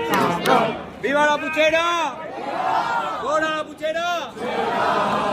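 A man shouts out loudly in a drawn-out voice close by.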